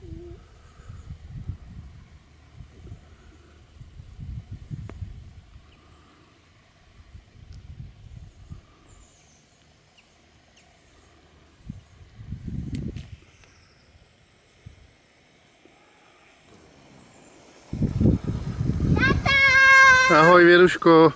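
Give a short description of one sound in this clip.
Bicycle tyres roll softly over a paved path.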